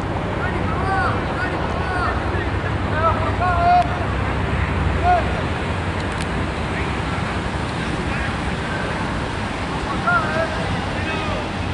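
Young men call out to each other across an outdoor pitch.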